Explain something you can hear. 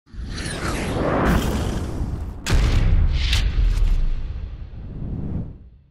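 A jet engine roars and whooshes past.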